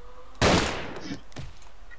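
A pistol fires a single loud shot.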